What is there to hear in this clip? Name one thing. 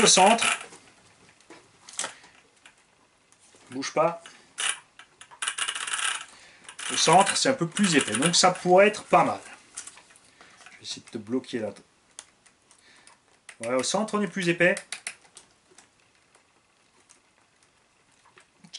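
Small plastic parts click and rattle under a man's hands.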